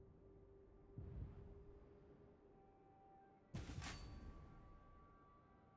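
A game menu makes short chiming and whooshing sounds.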